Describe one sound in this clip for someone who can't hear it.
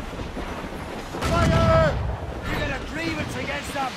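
A cannon fires with a loud boom.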